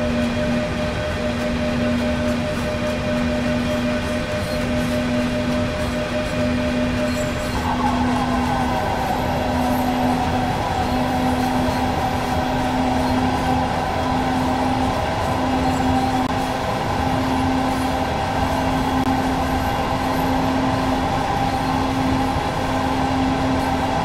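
A locomotive engine hums steadily.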